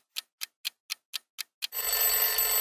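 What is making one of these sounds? A clock ticks quickly.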